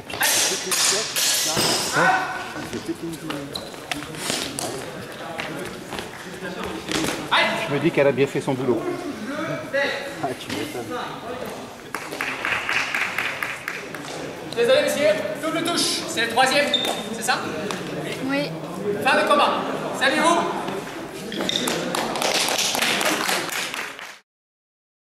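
Men talk and call out loudly across an echoing hall.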